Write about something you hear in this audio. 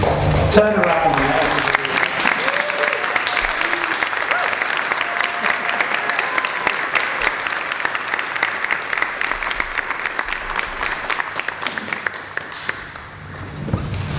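A crowd claps and applauds loudly.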